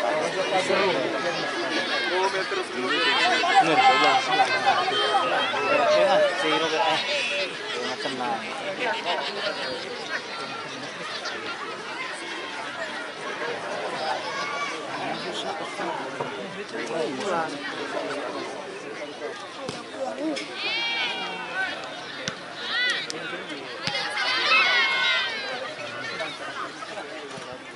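A large outdoor crowd chatters and shouts.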